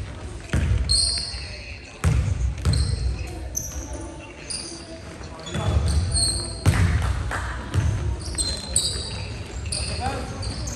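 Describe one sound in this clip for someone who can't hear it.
A basketball thuds on the floor.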